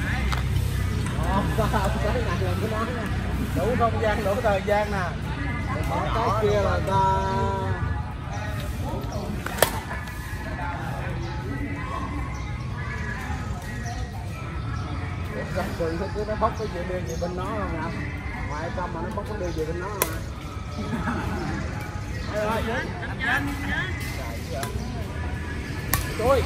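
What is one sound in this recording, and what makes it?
Badminton rackets strike a shuttlecock with sharp pops.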